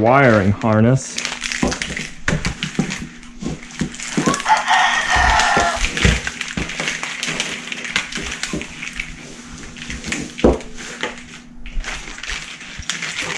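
Plastic-covered cables rustle and knock as they are handled.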